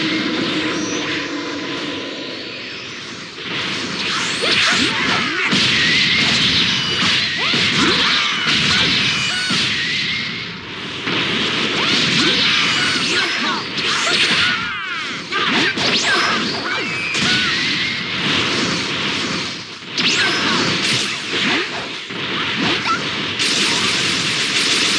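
A character's power aura hums and roars.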